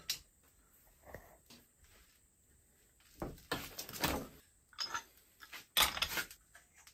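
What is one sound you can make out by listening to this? Metal fittings clink and scrape against each other.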